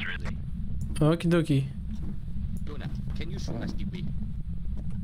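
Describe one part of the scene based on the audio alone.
A young man speaks into a microphone with animation.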